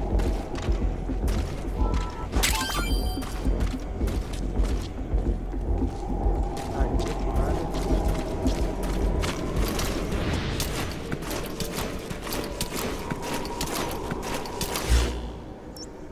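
Footsteps crunch on a gritty floor.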